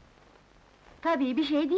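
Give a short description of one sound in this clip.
A young woman speaks, nearby.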